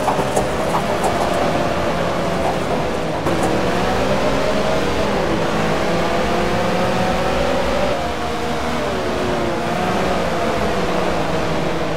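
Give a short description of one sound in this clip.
Several racing car engines roar loudly, rising and falling in pitch as they accelerate and shift gears.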